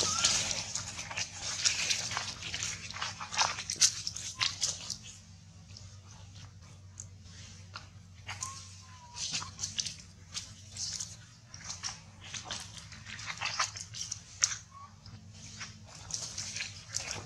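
A monkey walks through rustling dry leaves and grass.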